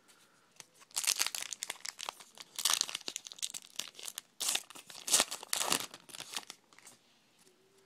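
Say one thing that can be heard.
A foil wrapper crinkles and tears loudly as it is opened.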